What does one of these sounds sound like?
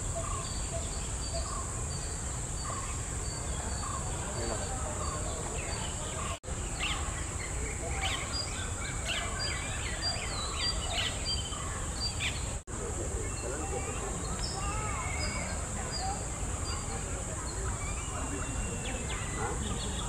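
A bird calls with short, repeated notes outdoors.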